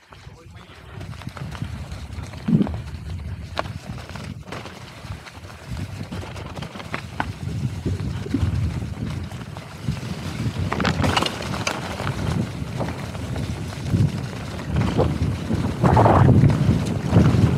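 Wind rushes past steadily as a bike speeds downhill.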